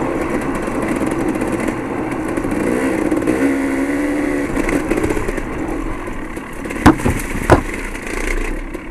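Tyres crunch and thump over loose gravel.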